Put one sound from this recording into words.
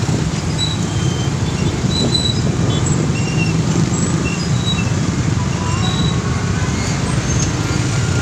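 Motorcycles rev and pull away together.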